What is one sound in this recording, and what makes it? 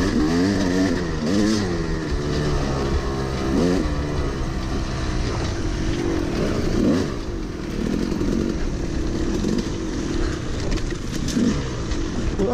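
Another dirt bike engine drones a short way ahead.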